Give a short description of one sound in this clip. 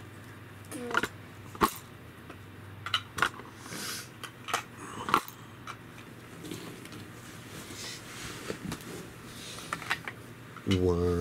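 A toddler clacks plastic toys together.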